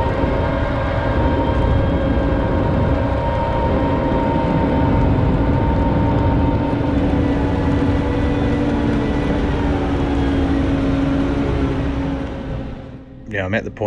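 A heavy tracked vehicle's engine rumbles steadily and loudly.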